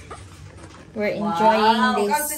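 A middle-aged woman speaks with animation close by.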